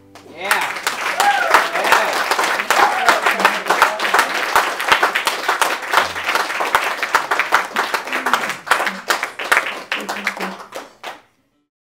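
Two acoustic guitars strum together.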